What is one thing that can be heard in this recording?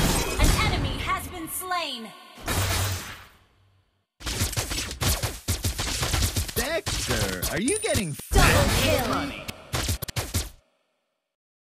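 Fighting sound effects from a video game clash and blast in quick bursts.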